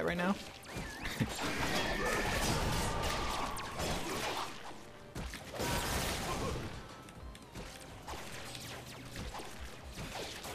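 Game weapons fire and explode in rapid bursts.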